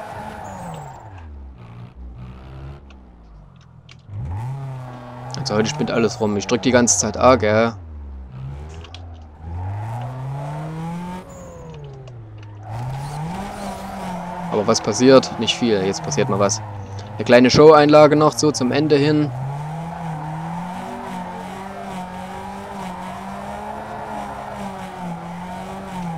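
A car engine revs up and down steadily.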